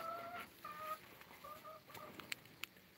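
A dog whines softly.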